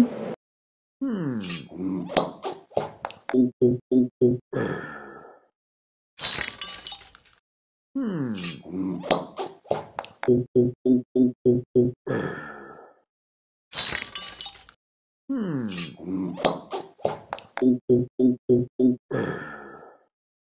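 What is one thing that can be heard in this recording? Quick gulping swallows of a drink come in bursts.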